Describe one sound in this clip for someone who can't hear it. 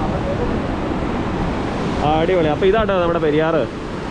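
A river rushes loudly over rocks below.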